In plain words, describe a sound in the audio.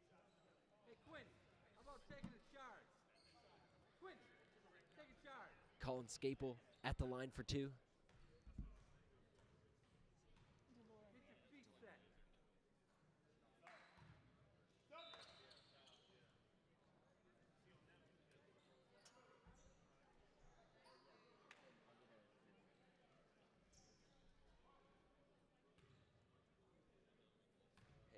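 Men's voices call out and talk across a large echoing gym.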